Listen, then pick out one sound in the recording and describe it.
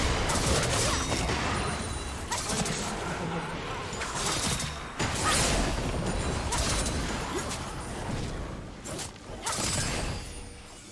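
Spell effects whoosh, crackle and burst in a fast fight.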